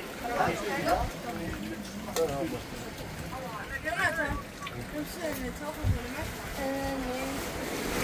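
Men and women chat quietly nearby.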